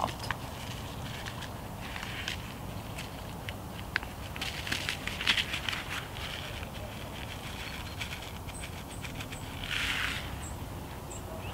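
A seed packet rustles and crinkles close by.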